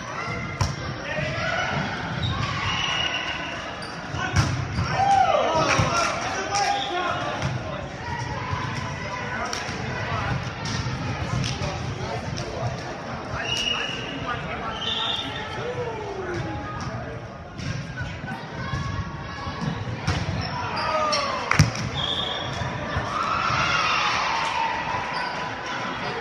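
Young men call out and shout to each other across the court.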